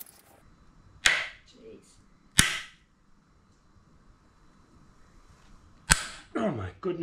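A metal clamp clicks and snaps sharply.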